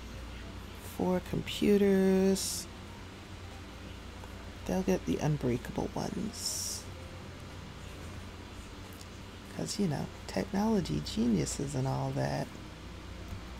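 A young woman talks with animation into a headset microphone, close by.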